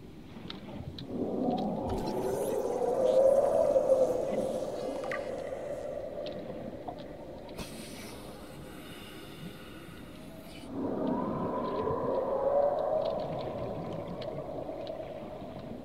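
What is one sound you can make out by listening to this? A scanning device hums with a warbling tone.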